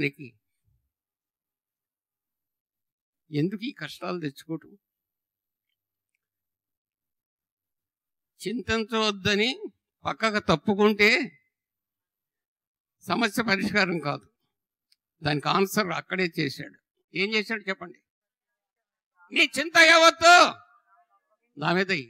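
An elderly man speaks with animation into a microphone, pausing between phrases.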